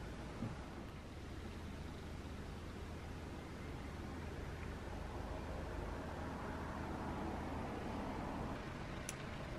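Beer pours into a glass and fizzes.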